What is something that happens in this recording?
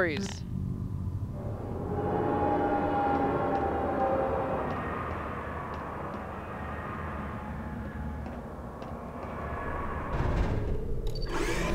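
An elevator rumbles and hums steadily as it moves.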